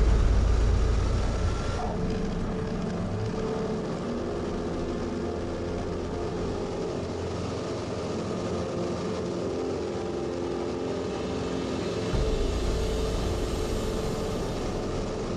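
Wind rushes past a small plane.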